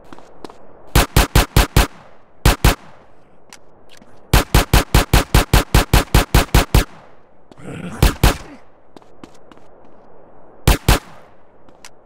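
Pistol shots fire in rapid bursts.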